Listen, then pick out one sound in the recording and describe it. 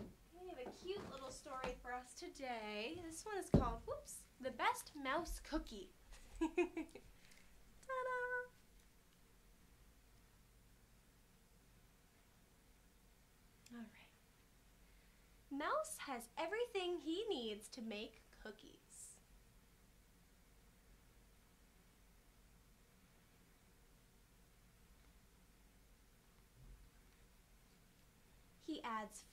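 A young woman talks animatedly and close by.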